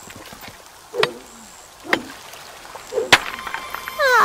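Rock smashes with sharp cracks.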